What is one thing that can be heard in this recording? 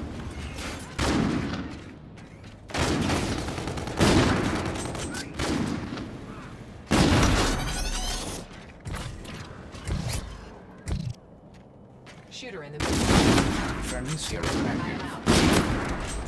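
A rifle fires loud, sharp shots several times.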